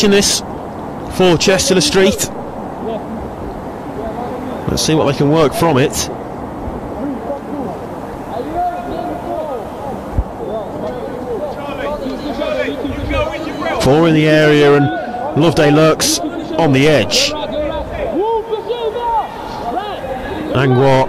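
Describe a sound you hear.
Players shout and call to each other across an open outdoor pitch.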